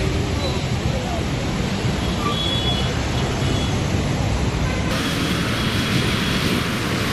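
Traffic rumbles past with tyres hissing on a wet road.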